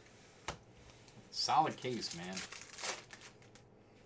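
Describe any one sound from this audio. Card packs crinkle as hands tear them open.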